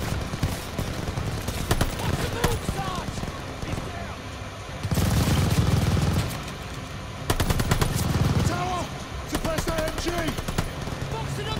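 A submachine gun fires rapid bursts of shots at close range.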